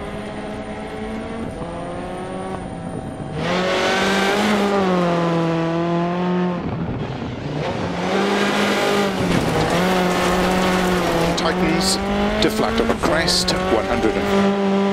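A rally car engine revs hard, rising and falling as it shifts gears.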